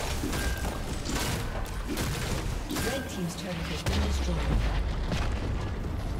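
Video game combat effects clash and crackle.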